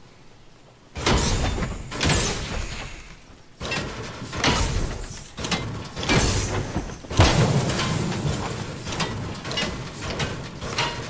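A pickaxe smashes repeatedly into a car with loud metallic crunches.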